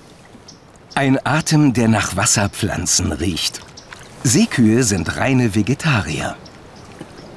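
A man speaks calmly and softly nearby.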